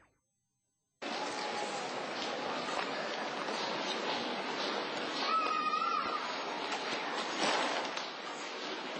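Young women chat quietly at a table outdoors.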